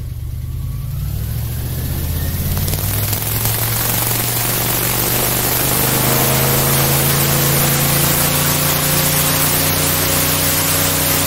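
An airboat engine revs up and roars louder as the boat speeds away.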